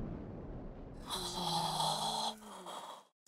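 A young woman gasps in amazement.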